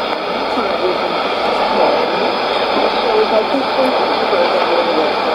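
A shortwave radio hisses with steady static.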